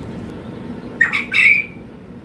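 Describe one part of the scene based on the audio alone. A bird gives two loud, sharp calls close by.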